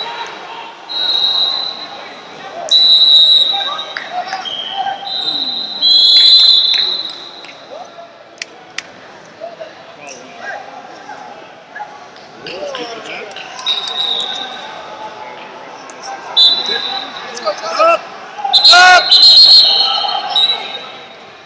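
Men shout from nearby in a large echoing hall.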